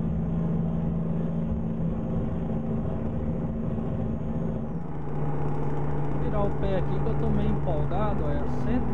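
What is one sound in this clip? A truck engine hums steadily, its pitch shifting once partway through.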